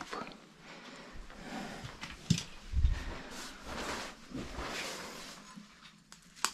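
Items rustle and clatter as someone moves about.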